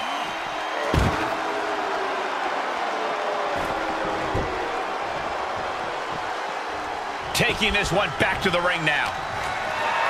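Bodies thud and slam hard against surfaces.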